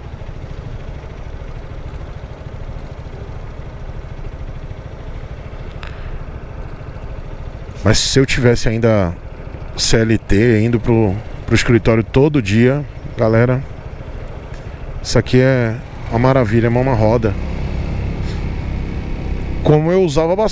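Wind rushes steadily past on a moving scooter.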